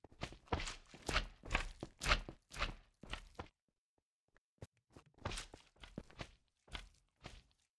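A slime squelches as it bounces.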